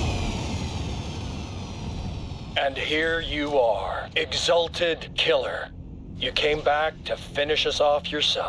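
A spaceship engine roars with a deep rumble.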